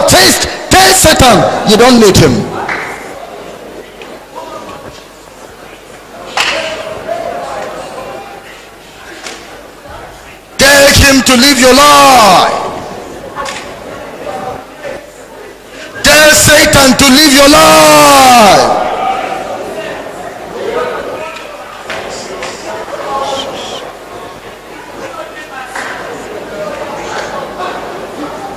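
A crowd of women and men prays and sings aloud together.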